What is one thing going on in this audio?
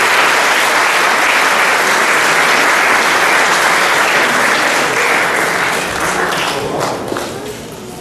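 An audience applauds and cheers loudly, then the applause fades.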